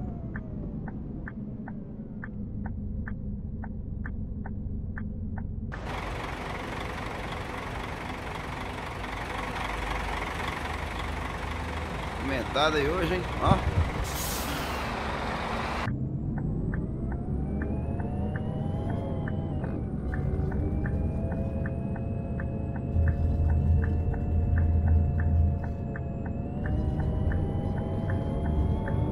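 A bus engine hums and revs as the bus drives.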